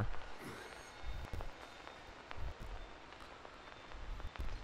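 Footsteps crunch slowly over stony ground.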